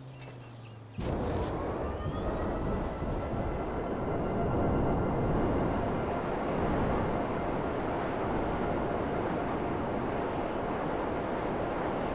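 A jetpack engine starts up and roars loudly and steadily.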